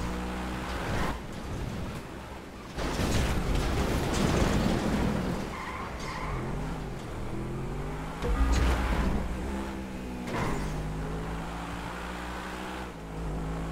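A sports car engine roars at full throttle, shifting up through the gears.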